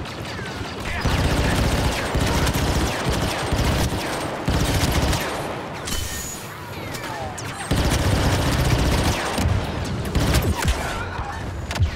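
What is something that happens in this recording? Explosions boom and crackle nearby.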